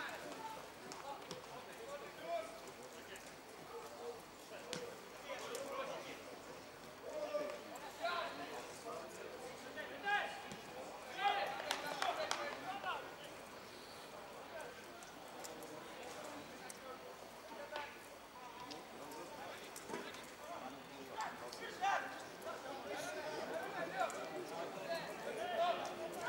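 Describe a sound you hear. Young men shout to each other from a distance across an open field outdoors.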